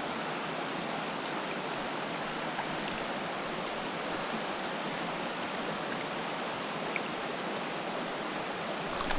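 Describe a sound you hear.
A shallow stream ripples and babbles steadily over stones outdoors.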